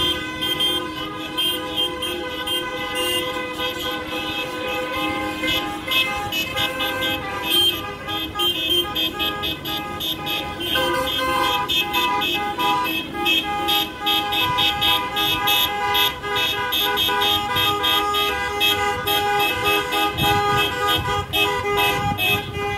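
Cars drive past on a street below.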